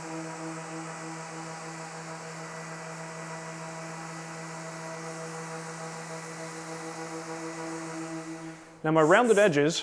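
An electric sander whirs steadily.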